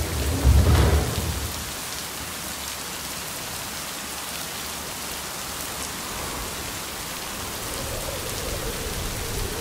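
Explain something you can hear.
A train rumbles steadily along through an echoing tunnel.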